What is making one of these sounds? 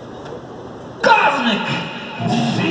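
A young man sings loudly into a microphone over a loudspeaker.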